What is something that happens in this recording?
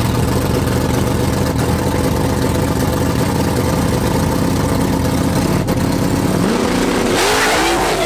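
A car engine idles loudly with a deep rumble.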